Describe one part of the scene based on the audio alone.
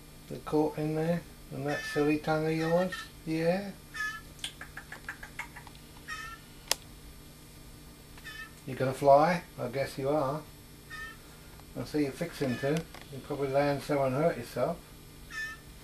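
An elderly man speaks softly and warmly up close.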